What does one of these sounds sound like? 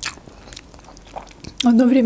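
A fork scrapes against a plate.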